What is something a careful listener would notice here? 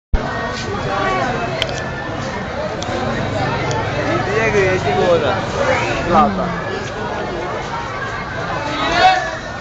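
A large crowd murmurs and chatters loudly all around.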